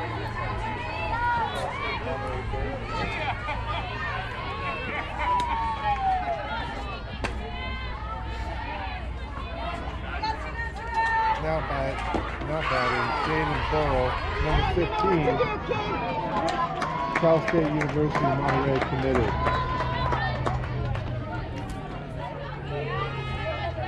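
Young women chat and call out outdoors, some close by and some farther off.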